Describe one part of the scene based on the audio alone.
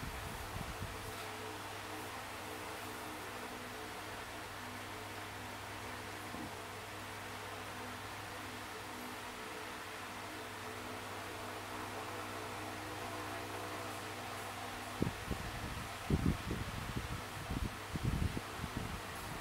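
Game music plays with a steady tune.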